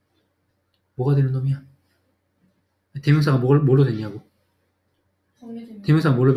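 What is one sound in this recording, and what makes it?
A young man speaks calmly and explains, close to a microphone.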